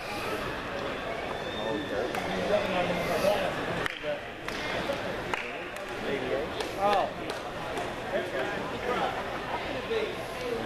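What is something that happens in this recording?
A crowd of spectators murmurs and calls out across an open stadium.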